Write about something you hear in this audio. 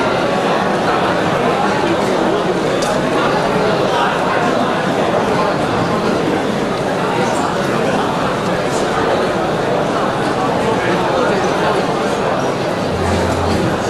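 A large audience murmurs and chatters in a big echoing hall.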